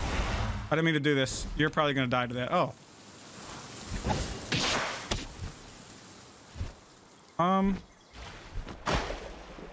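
A magical blast bursts with a crackle.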